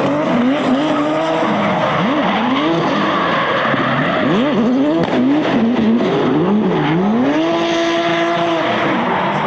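Car engines rev hard and bounce off the limiter.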